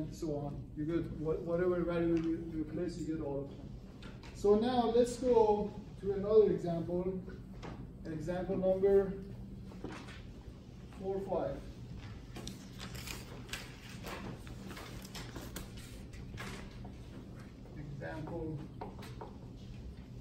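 A man lectures calmly.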